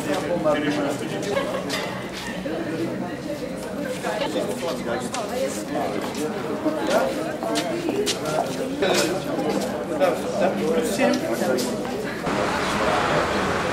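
Several men and women talk in a lively crowd outdoors.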